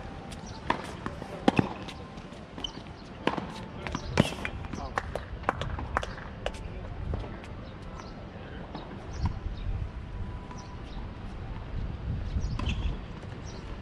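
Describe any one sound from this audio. Tennis balls are struck with rackets with sharp pops.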